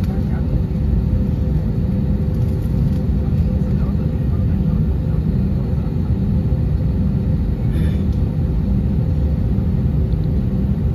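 The turbofan engines of an Airbus A321 rumble at low power, heard from inside the cabin as the jet taxis.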